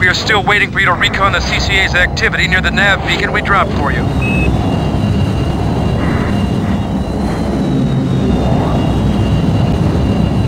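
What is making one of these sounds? A hovering vehicle's engine rumbles steadily.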